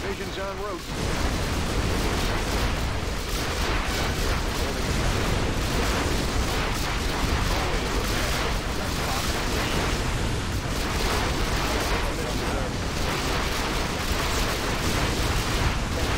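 Energy weapons zap and crackle.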